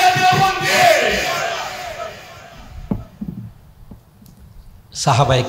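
An elderly man preaches loudly and fervently through a microphone and loudspeakers, with echo.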